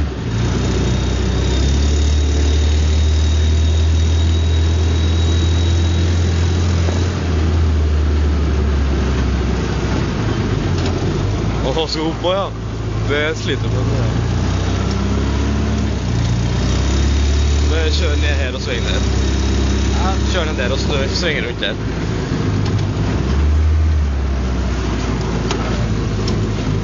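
A vehicle engine drones loudly and steadily, rising and falling with the throttle.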